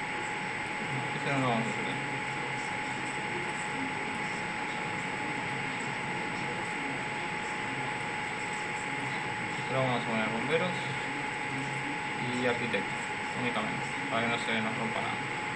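A young man speaks casually into a nearby microphone.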